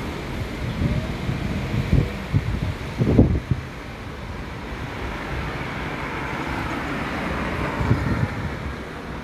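Cars drive past close by, with tyres hissing on the road.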